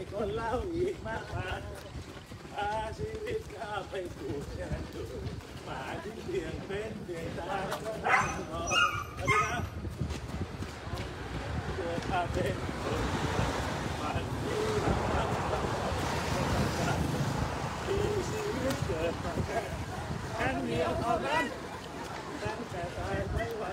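A man and women talk while running close by.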